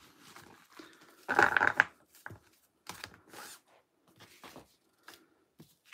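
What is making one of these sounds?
Cards shuffle and slide against each other in a hand.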